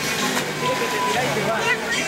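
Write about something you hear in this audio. Water splashes loudly as someone lands in a pool.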